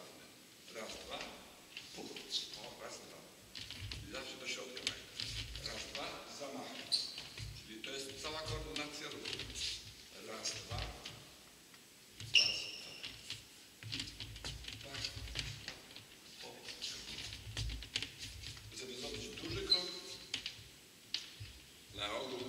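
Table tennis balls click rapidly off a paddle and table in an echoing hall.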